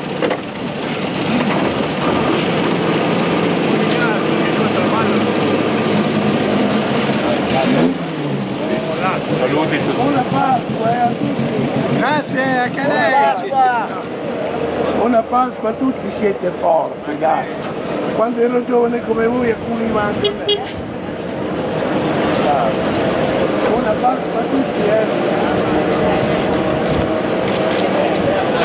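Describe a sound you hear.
Many car engines idle and rumble nearby.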